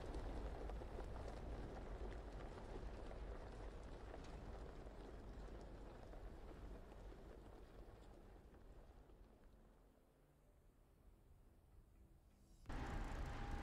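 A propeller plane's engine idles with a low rumble, slowly growing quieter.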